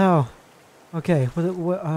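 A paddle splashes into water.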